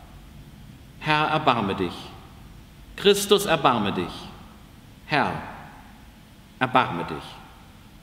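A man speaks calmly and slowly in a reverberant hall, with pauses between phrases.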